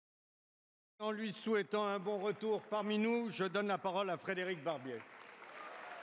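An older man speaks formally into a microphone in a large hall.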